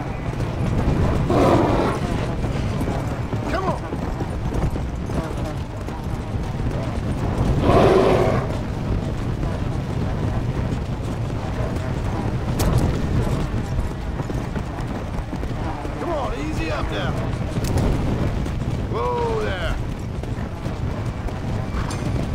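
Horse hooves pound steadily on dry ground at a gallop.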